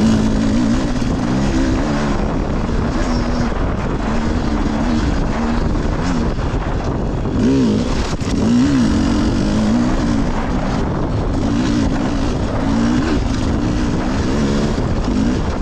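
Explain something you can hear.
Tyres crunch over rough stony ground.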